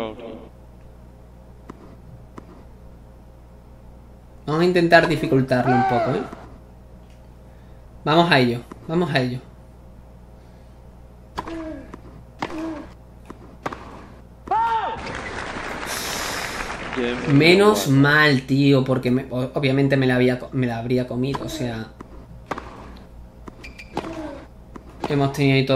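A tennis ball is hit back and forth with sharp pops.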